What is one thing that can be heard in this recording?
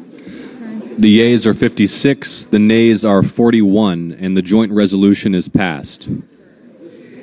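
A man speaks clearly and formally into a microphone.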